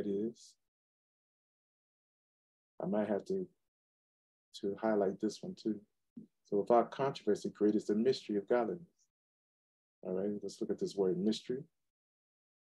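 A man reads aloud calmly, close to a microphone.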